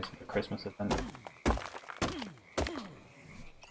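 A stone tool chops at a rock with sharp knocks.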